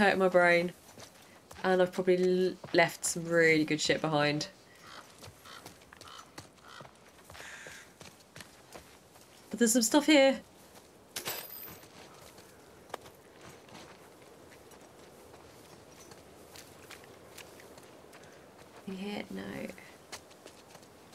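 A young woman talks with animation, close to a microphone, in short bursts.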